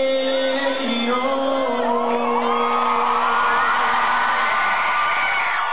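An electric guitar plays on loudspeakers.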